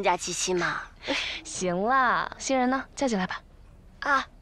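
A young woman speaks brightly and cheerfully.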